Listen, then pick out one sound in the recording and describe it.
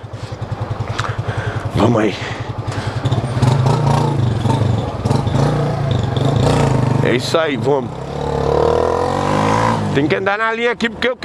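A motorcycle engine hums and revs steadily up close.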